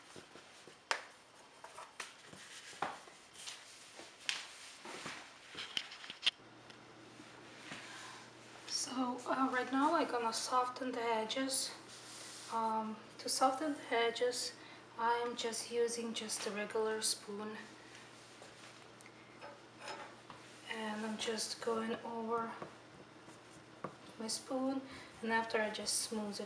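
Stiff paper rustles and crinkles as hands handle it.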